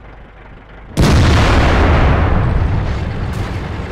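A tank cannon fires with a loud boom and echoes away.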